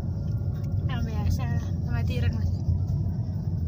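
A young woman talks softly close by.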